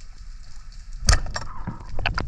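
A speargun fires underwater with a sharp, sudden thud.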